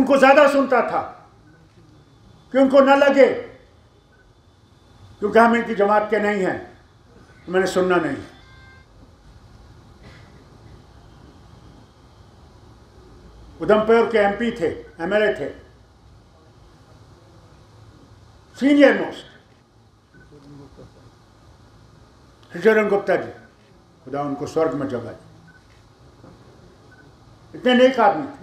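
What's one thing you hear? An elderly man speaks forcefully into a microphone in short bursts with pauses.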